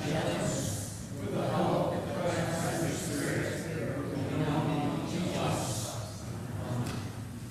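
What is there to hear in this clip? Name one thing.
An elderly man reads aloud calmly through a microphone in a large echoing room.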